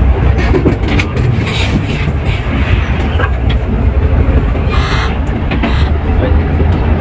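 A bus engine rumbles steadily from inside the cab.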